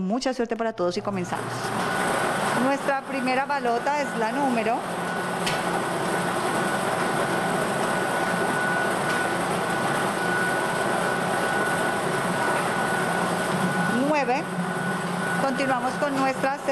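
A lottery machine's blower whirs and roars steadily.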